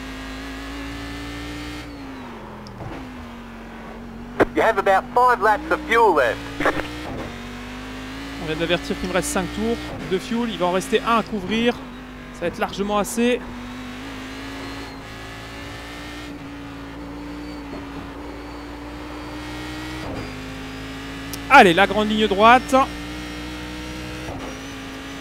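A racing car engine drones steadily, its pitch shifting with gear changes.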